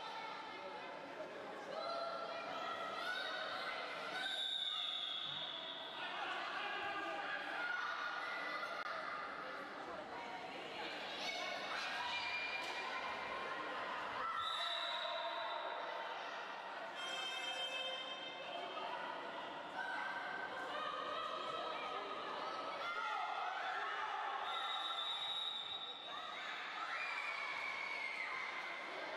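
Young girls shout and call out to one another in an echoing hall.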